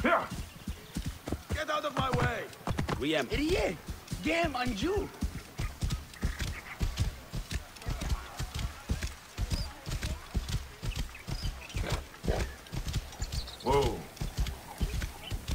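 A horse gallops with quick, heavy hoofbeats on a dirt road.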